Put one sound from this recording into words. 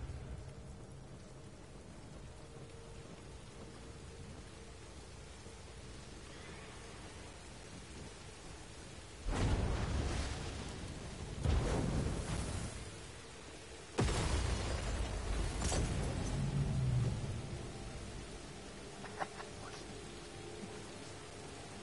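Water splashes and pours down steadily.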